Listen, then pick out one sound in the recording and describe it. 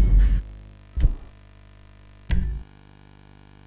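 Menu selections click with short thuds.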